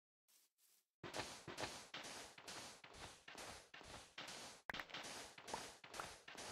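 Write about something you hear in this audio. Sand and gravel crunch in quick, repeated scrapes as blocks are dug.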